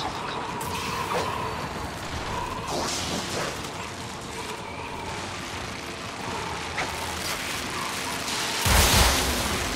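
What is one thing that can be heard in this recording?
An energy weapon crackles and hums as it fires.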